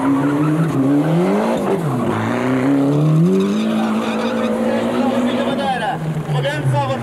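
A rally car engine revs hard, rising and falling in pitch.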